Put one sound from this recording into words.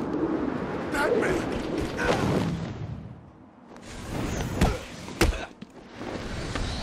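Heavy punches and kicks thud in a fight.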